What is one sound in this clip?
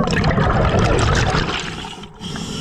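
Bubbles rush and gurgle loudly underwater.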